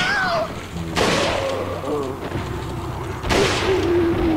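A rifle fires loud shots that ring out in an echoing hall.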